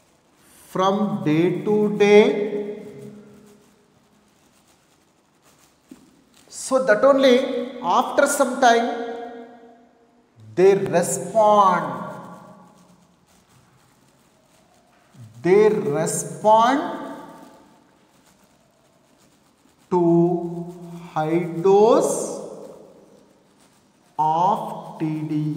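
A man speaks calmly and clearly in short, paced phrases, close by.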